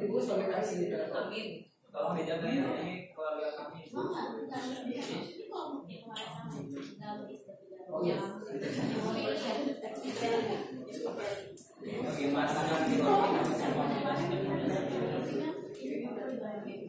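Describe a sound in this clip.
Several women and men talk at once in a room, overlapping in a busy murmur.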